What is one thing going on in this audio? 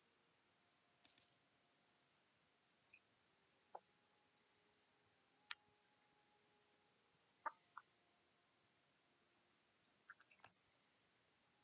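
Short game interface clicks sound now and then.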